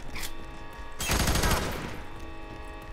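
A rifle fires a short burst of loud shots.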